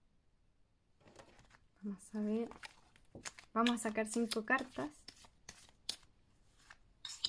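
A deck of cards is shuffled with soft riffling and tapping.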